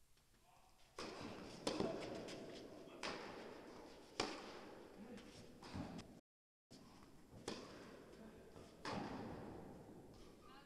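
Tennis balls are struck with rackets, echoing in a large hall.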